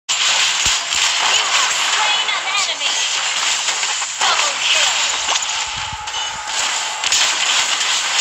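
Game spell blasts and hits crackle and whoosh in quick bursts.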